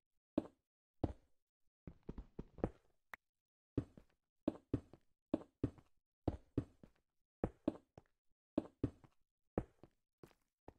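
Stone blocks thump down one after another.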